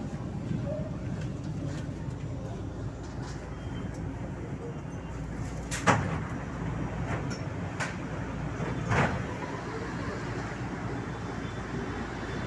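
A light rail train rumbles along the track, heard from inside the carriage.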